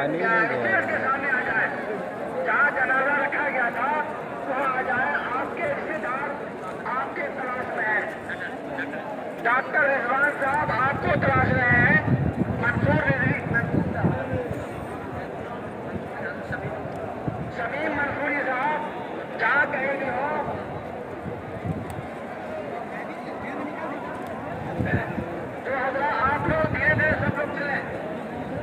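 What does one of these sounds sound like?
A large crowd of men murmurs and chatters outdoors.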